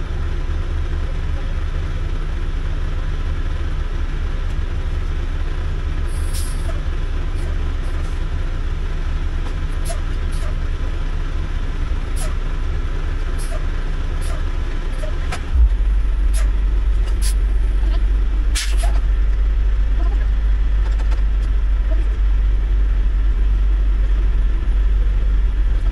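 A truck engine idles with a low, steady rumble that grows louder partway through.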